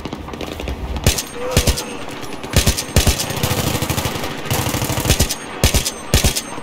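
A rifle fires loud shots, often in quick pairs, with a short echo after each.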